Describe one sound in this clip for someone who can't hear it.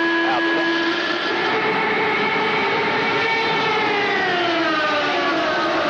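Several racing car engines drone at a distance, slowly falling in pitch.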